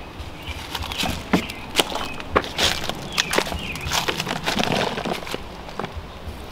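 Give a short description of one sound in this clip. A gloved hand rustles and scrapes through damp compost.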